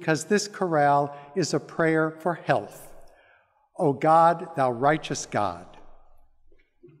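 A middle-aged man speaks through a microphone in a large echoing hall.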